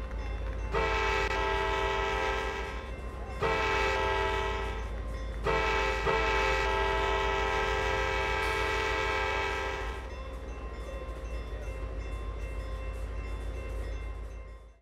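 A train rumbles past.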